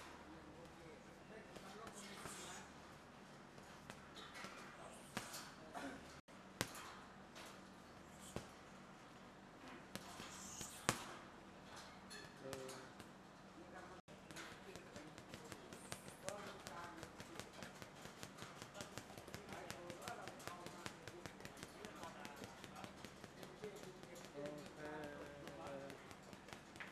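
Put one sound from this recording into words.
Boxing gloves thud against a heavy punching bag in quick bursts.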